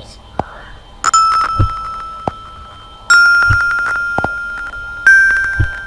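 Bright xylophone notes ring out one at a time, each slowly fading.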